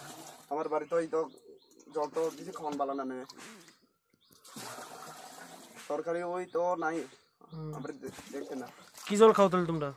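A metal pot scoops and splashes water in a shallow pool.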